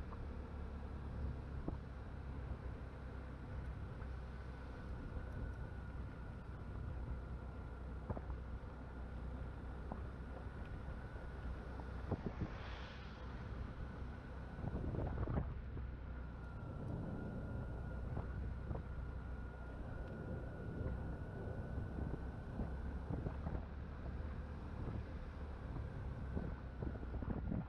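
Wind rumbles and buffets against the microphone while moving outdoors.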